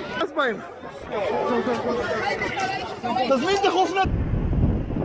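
Men shout excitedly close by.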